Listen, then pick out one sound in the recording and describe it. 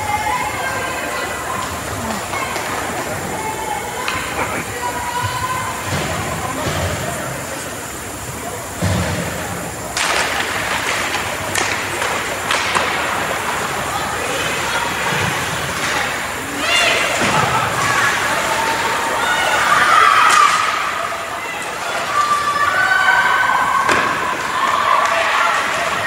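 Players' voices call out in a large echoing rink.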